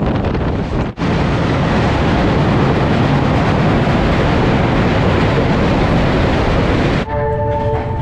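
A train rumbles loudly over a bridge.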